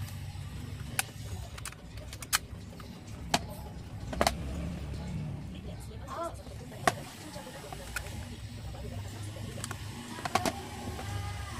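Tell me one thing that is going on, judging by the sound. A metal box clicks and knocks as hands turn it over and set it down on a table.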